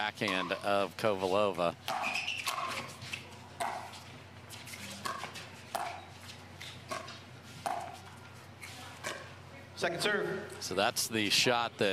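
Pickleball paddles pop sharply against a plastic ball in a quick rally.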